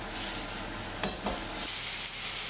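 Chopsticks tap against a pan.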